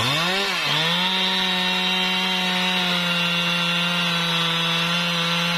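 A chainsaw cuts steadily through a log at full throttle.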